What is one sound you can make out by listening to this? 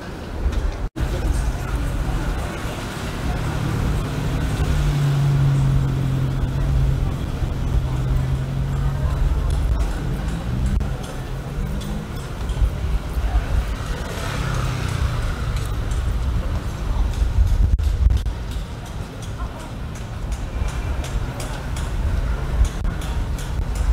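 Passers-by talk quietly nearby.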